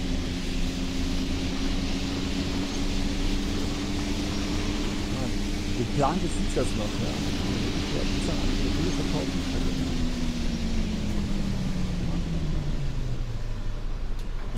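A bus engine hums steadily, then winds down as the bus slows to a stop.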